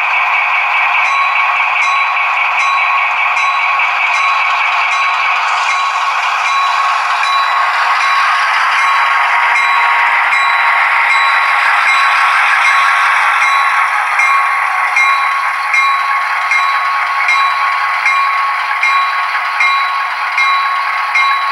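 Model train wheels click rhythmically over rail joints.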